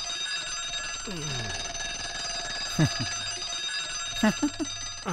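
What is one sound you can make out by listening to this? A man snores loudly in his sleep.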